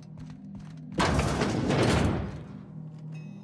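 A heavy metal door slides open with a loud whoosh.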